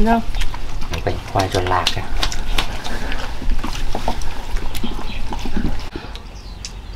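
A dog crunches food from a dish.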